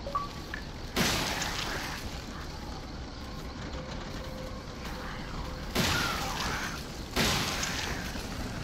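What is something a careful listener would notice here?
A shotgun fires loudly with booming blasts.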